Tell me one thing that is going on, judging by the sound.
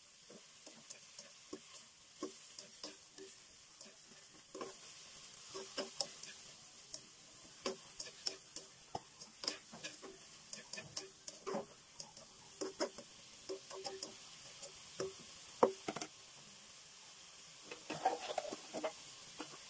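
Cabbage sizzles in hot oil.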